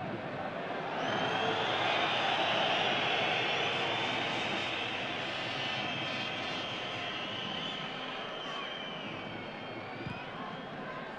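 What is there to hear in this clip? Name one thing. Fans in a stadium crowd whistle shrilly.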